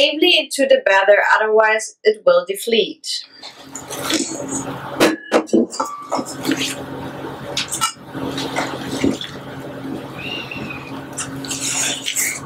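A spatula scrapes and taps against a metal bowl.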